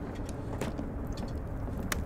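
A fire crackles in a fireplace.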